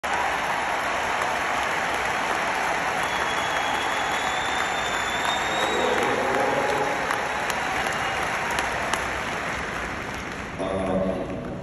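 A crowd cheers loudly in a large echoing arena.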